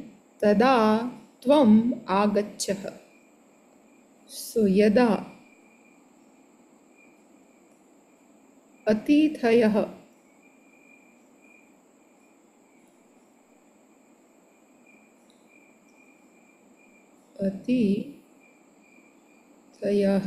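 A woman speaks calmly in short phrases over an online call.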